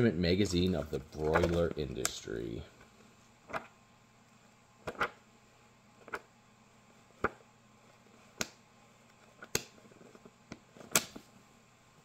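Pages of a thick book flip and rustle.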